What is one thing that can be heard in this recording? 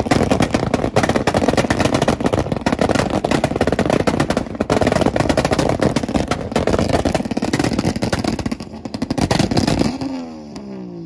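A car engine revs loudly, with the exhaust popping.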